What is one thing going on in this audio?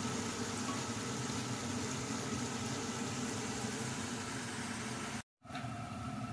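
Sauce bubbles and sizzles in a pan.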